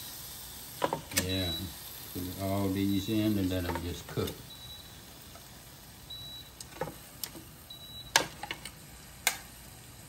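Metal tongs clack against a cooking basket.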